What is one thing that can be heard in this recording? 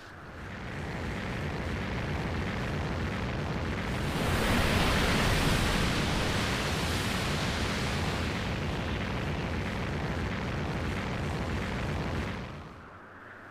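Fire roars and rushes loudly.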